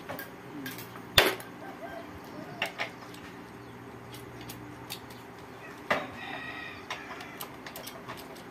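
Metal parts clank and rattle as a bike frame is handled.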